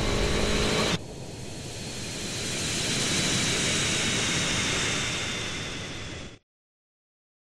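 A jet airliner roars loudly as it passes low overhead.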